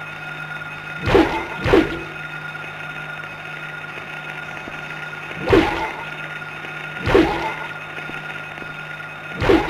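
A character in a video game swings a metal pipe and strikes creatures with heavy thuds.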